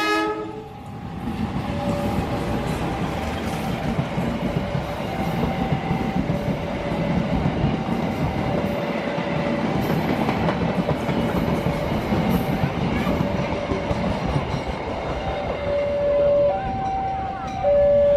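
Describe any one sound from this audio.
Train wheels clatter and rattle over the rails close by.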